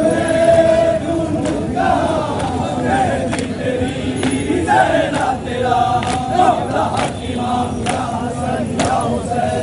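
Many hands beat on chests in a steady rhythm.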